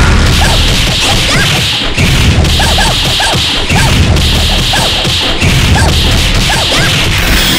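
Punches and kicks land in a rapid string of hits.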